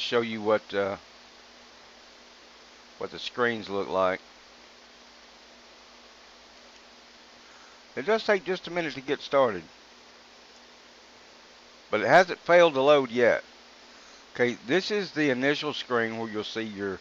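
A man talks calmly and close to a microphone, in short bursts with pauses.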